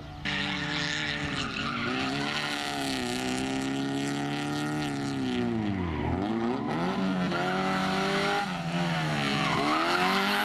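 A rally car engine revs hard, rising and falling in pitch as the car passes close by.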